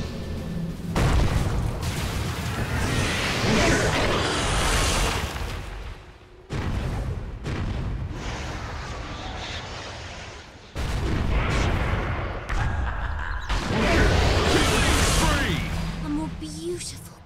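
Magic spells crackle, roar and whoosh in loud bursts.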